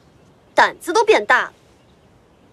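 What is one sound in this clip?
A young woman speaks calmly and coolly.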